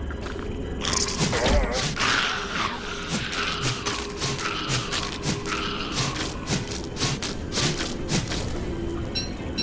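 Quick blows land with sharp clanks and thuds in a fight.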